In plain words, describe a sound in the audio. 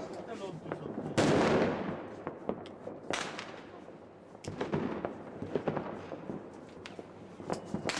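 A firework fizzes and crackles outdoors.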